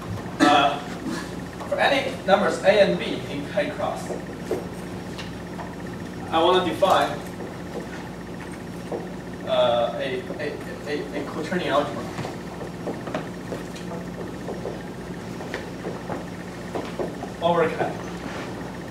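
A young man speaks calmly, lecturing.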